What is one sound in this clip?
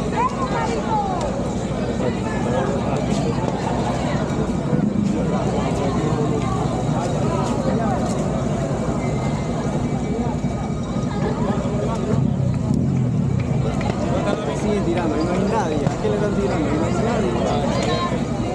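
A crowd of men and women chatter and shout outdoors.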